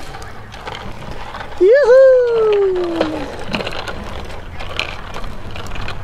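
Small bicycle tyres roll on pavement.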